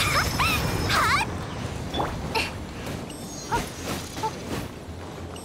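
Fiery magic blasts whoosh and burst in quick bursts.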